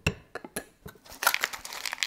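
A hammer taps on cardboard.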